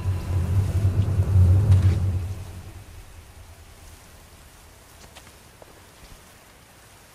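Soft footsteps shuffle over stone and grass.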